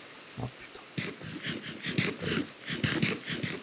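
Crunchy bites munch on berries in quick succession.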